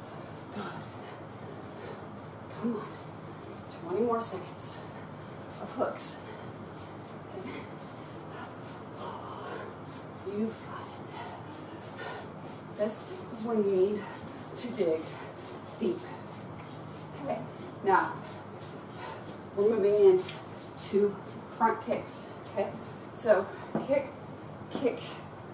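Sneakers thump and shuffle on a hard floor.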